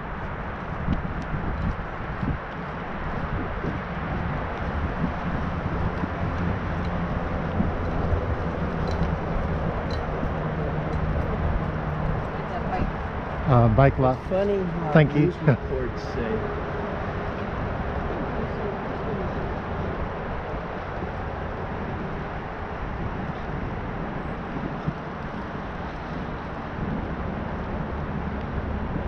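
Wind buffets a microphone outdoors while riding.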